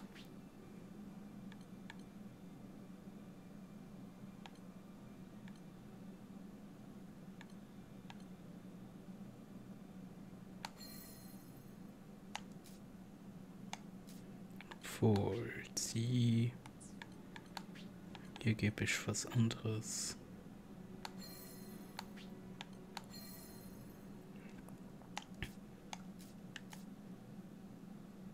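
Soft game menu clicks tick as selections change.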